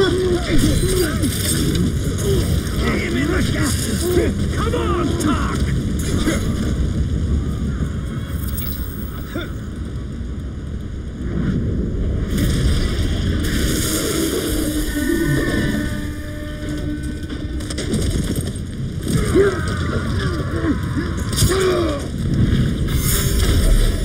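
Creatures snarl and growl.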